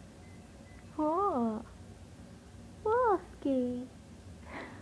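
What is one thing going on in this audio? A puppy whines in short, high, wavering yelps nearby.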